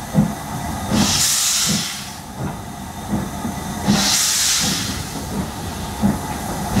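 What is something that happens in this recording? A steam locomotive chuffs in a steady rhythm.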